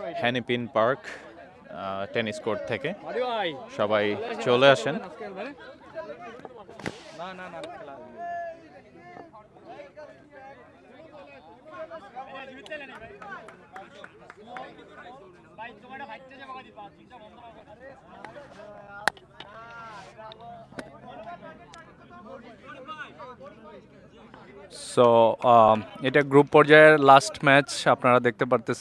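A crowd of spectators talks and cheers outdoors.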